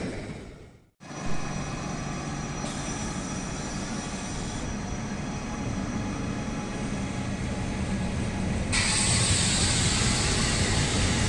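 An electric passenger train rolls past, its wheels rumbling on the rails.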